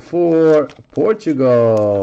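A card slides into a plastic sleeve with a soft crinkle.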